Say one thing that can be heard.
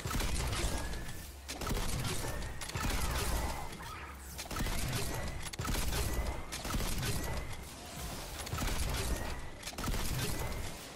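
Energy blasts fire and crackle in rapid bursts.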